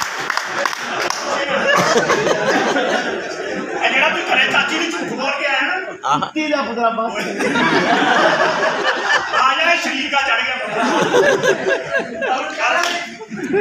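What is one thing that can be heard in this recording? Young men talk loudly and with animation.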